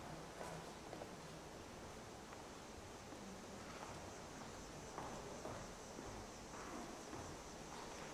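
Footsteps shuffle softly as people walk slowly.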